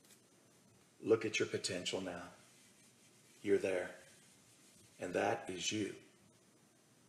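A middle-aged man speaks calmly and close by, in short phrases.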